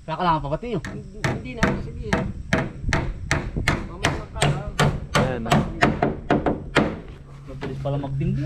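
A hammer strikes wood again and again in quick blows.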